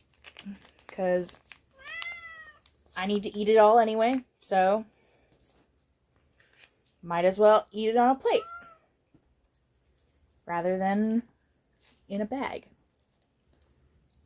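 A plastic pouch crinkles in someone's hands.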